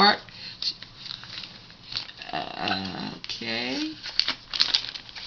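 A plastic sleeve crinkles and rustles as hands handle it.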